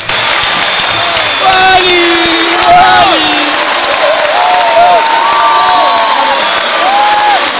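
A crowd cheers and shouts close by.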